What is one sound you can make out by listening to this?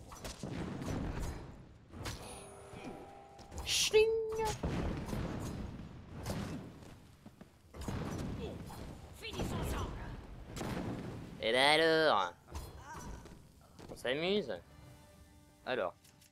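Swords clash and strike repeatedly in a fierce fight.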